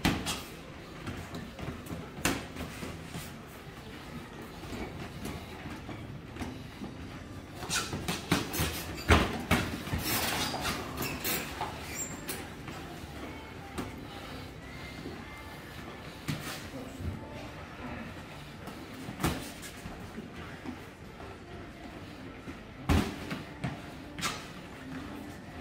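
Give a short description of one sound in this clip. Boxing gloves thud against each other in quick bursts.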